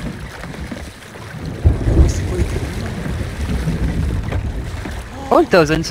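Oars splash in water as a small boat is rowed.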